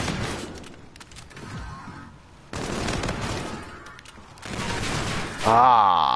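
Rapid gunfire bursts from an automatic rifle.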